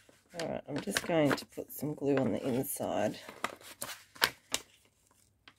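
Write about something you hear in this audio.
A glue stick rubs across paper.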